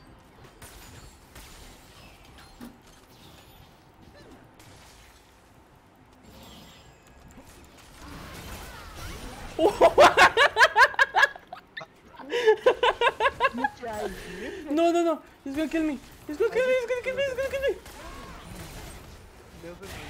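Magic blasts and sword hits crackle and clash in a fast fight.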